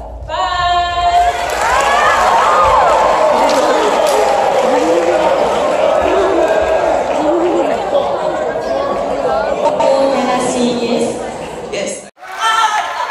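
Pop music plays loudly over loudspeakers in a large hall.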